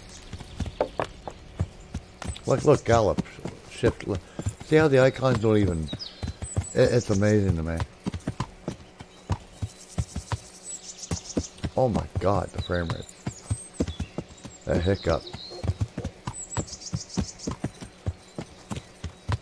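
A horse's hooves thud rapidly on a dirt path in a gallop.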